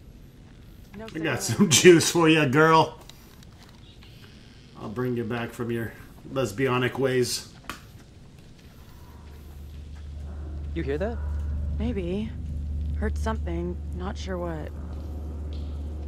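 A young man talks quietly and tensely, close by.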